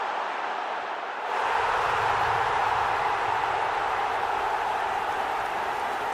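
A large stadium crowd cheers loudly, swelling after a goal.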